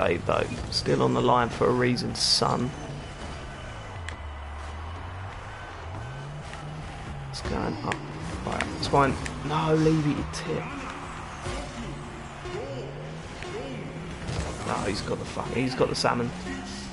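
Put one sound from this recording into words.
A car engine hums and revs in a video game.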